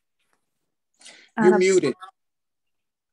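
A middle-aged woman speaks briefly over an online call.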